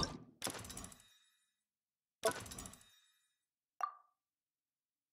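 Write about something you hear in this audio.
Bright menu chimes ring out as selections change.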